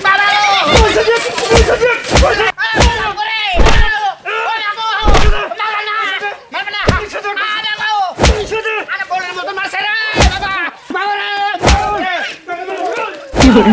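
Blows land with thuds as men scuffle.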